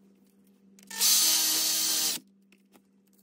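A power drill whirs into concrete.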